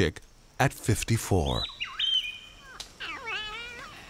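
Parrots call with loud, harsh whistles.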